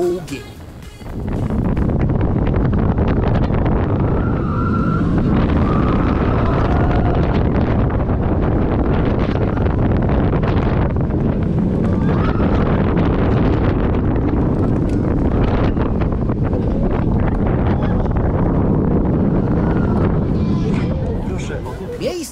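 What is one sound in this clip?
Wind roars loudly.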